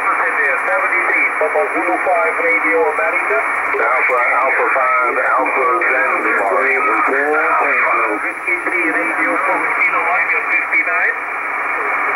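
A distorted voice comes through a radio loudspeaker, warbling in and out of the static.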